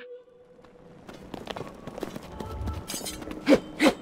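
Footsteps scuff on stone.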